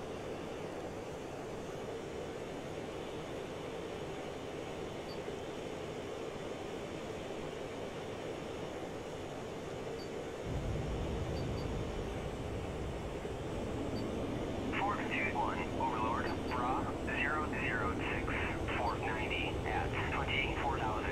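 A jet engine roars steadily, growing deeper and louder partway through.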